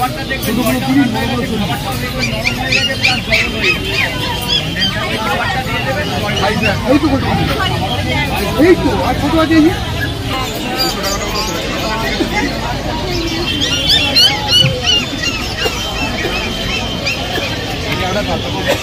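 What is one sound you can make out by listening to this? A crowd of men and women chatter close by outdoors.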